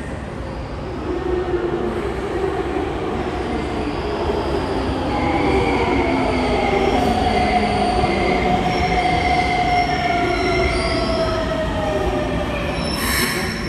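A train rumbles into an underground station, loud and echoing.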